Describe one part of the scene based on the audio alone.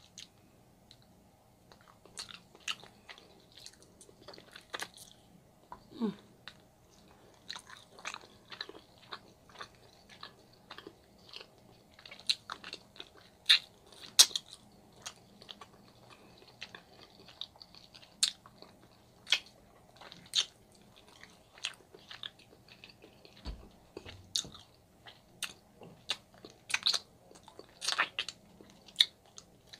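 A woman sucks and licks sauce from her fingers with wet smacking sounds.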